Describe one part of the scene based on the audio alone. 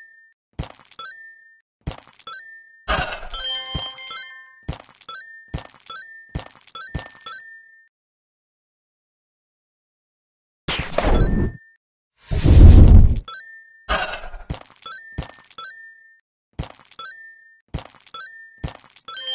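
Short electronic clicks and beeps sound again and again.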